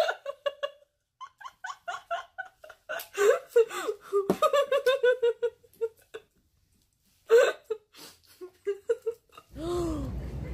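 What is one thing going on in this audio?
A young woman laughs heartily.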